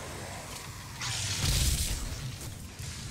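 An energy blast bursts loudly with a crackling hiss.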